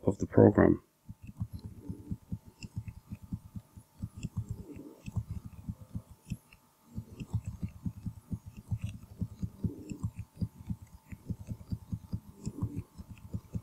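Keys clatter rapidly on a computer keyboard.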